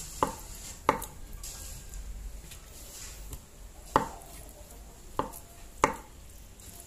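A dish knocks lightly on a table.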